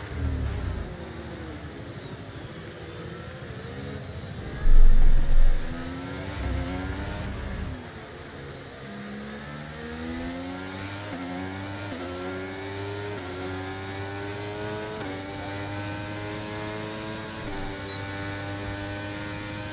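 A racing car engine whines and rises in pitch as the car speeds up through the gears.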